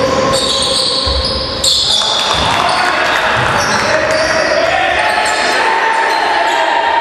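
Sneakers squeak sharply on a hard floor in an echoing hall.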